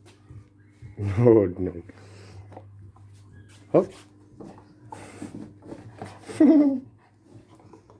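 A dog growls and grumbles close by.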